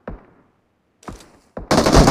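A sniper rifle fires a sharp shot.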